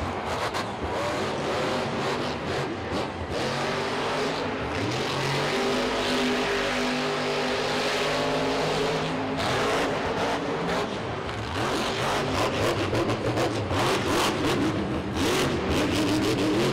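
A monster truck engine roars loudly and revs up and down.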